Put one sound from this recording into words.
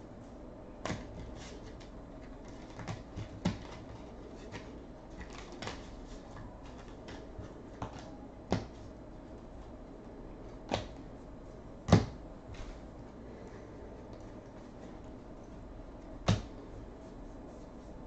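Trading cards rustle and slide against each other in a man's hands.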